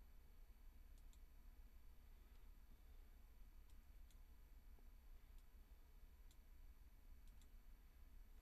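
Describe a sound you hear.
Computer keys click faintly and sparsely.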